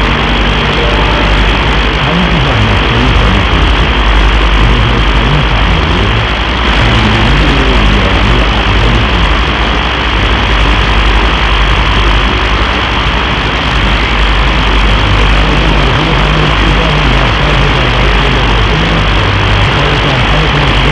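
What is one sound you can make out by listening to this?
A radio hisses with steady static and crackle.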